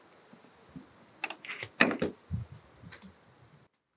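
A door latch clicks open.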